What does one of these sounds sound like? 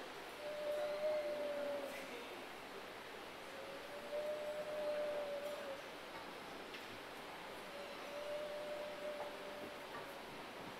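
Acoustic guitars play softly.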